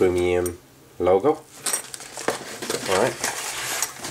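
Plastic bags crinkle and rustle as hands handle them.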